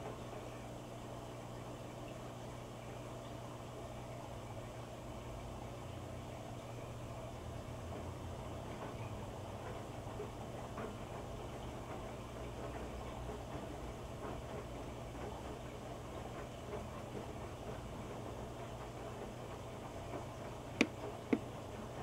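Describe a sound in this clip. A washing machine hums steadily as its drum turns.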